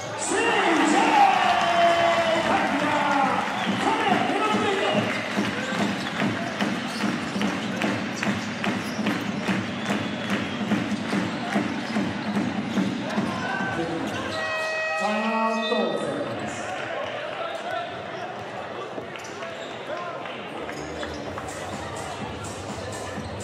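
A crowd murmurs and cheers in the stands.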